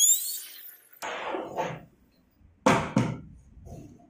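A wooden door panel knocks and thumps as it is lifted.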